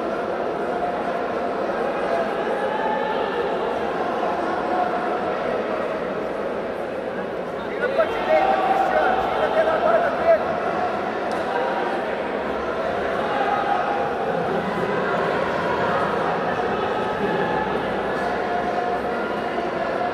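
A crowd of spectators chatters and shouts throughout a large echoing hall.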